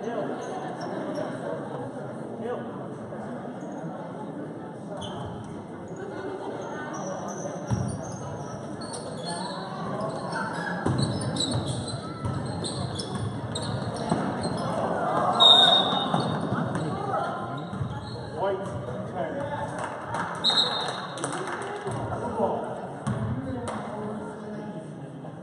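A crowd of spectators murmurs and calls out in a large echoing hall.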